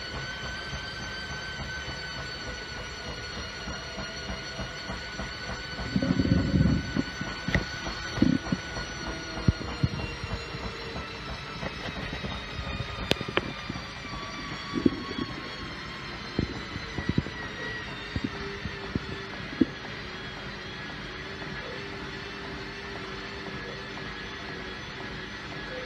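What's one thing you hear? A washing machine drum turns with a steady hum and whine.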